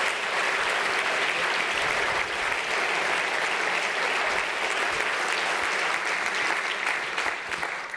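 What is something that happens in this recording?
A large crowd applauds steadily in a big room.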